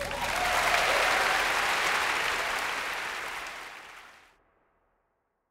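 An orchestra plays and the sound fades away.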